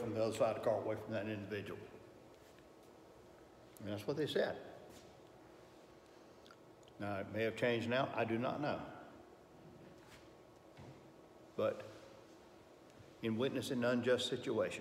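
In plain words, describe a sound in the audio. An elderly man speaks calmly, with pauses between phrases.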